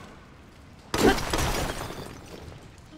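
A bomb explodes with a loud boom.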